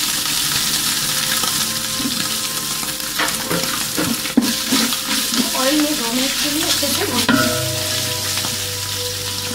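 Liquid bubbles and sizzles steadily in a pot.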